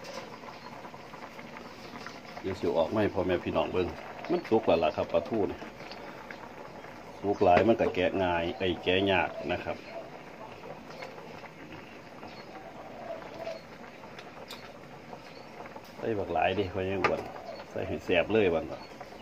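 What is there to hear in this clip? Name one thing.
A pot of soup simmers on a gas burner.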